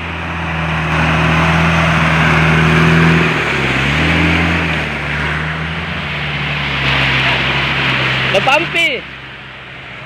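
An off-road vehicle's engine roars and revs close by.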